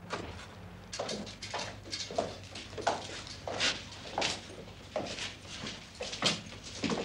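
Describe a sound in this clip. Boots step across a hard floor.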